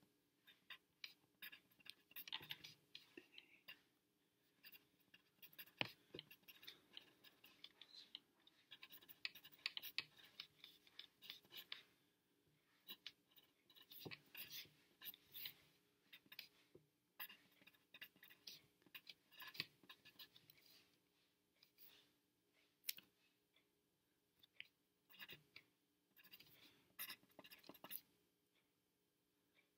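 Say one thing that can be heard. A pencil scratches on paper in short bursts, close up.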